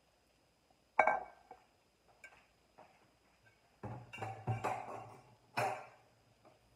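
A glass bowl knocks down onto a stone counter.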